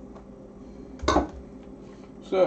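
A metal bowl is set down with a knock on a hard counter.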